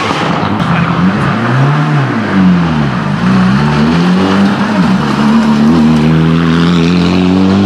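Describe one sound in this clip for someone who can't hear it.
A second rally car engine roars closer, rising and falling as it shifts gears.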